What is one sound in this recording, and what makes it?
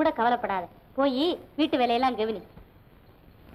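A young woman speaks softly and with feeling.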